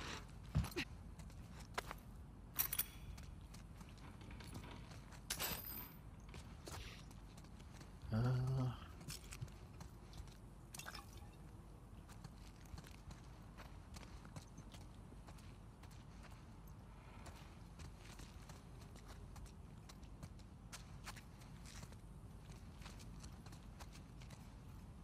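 Footsteps tread on a hard floor, echoing softly indoors.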